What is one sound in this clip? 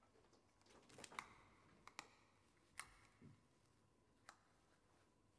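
Headphones knock and rustle softly as a woman puts them on.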